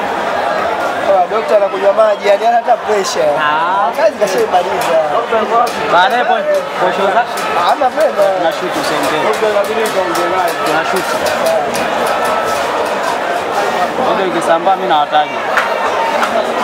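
Spectators shout and whistle loudly from the stands.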